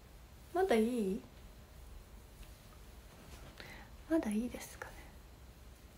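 A young woman speaks close to the microphone in short, lilting phrases.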